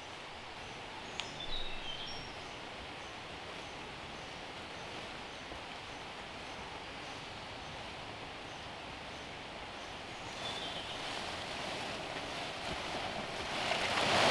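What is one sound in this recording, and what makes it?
Large palm leaves rustle and swish as they are carried through the undergrowth, growing louder as they come near.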